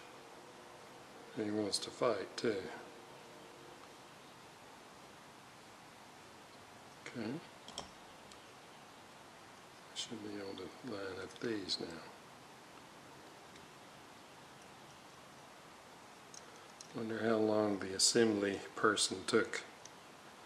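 Small metal parts click and rattle softly as they are handled.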